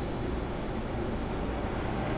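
Liquid paint pours into a plastic cup.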